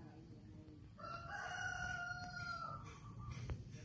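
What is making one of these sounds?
A cat yowls sharply.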